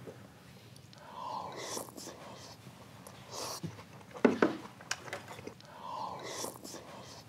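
A man chews food noisily with his mouth full.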